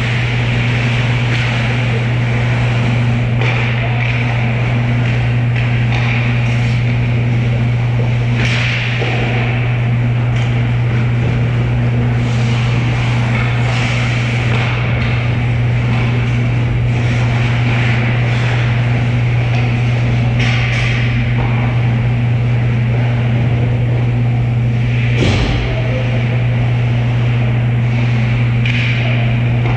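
Ice skates scrape and swish across the ice in a large echoing rink.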